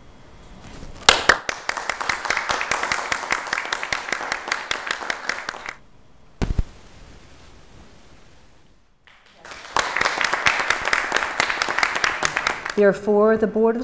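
A crowd applauds in a room.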